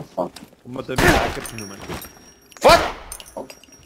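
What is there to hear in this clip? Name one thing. A gun fires loud single shots.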